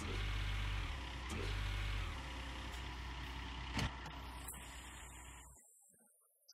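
A heavy excavator engine rumbles steadily and then stops.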